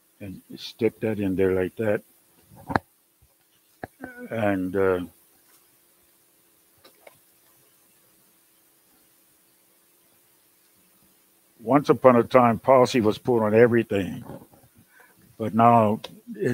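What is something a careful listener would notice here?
A man speaks calmly through a clip-on microphone, with pauses.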